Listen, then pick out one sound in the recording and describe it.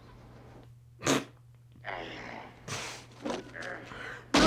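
A young woman gasps and laughs close to a microphone.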